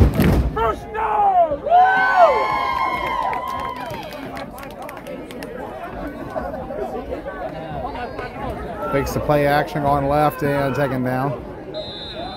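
Young men shout loudly from close by.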